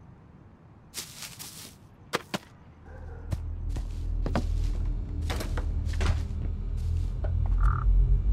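Footsteps hurry across grass and wooden floors.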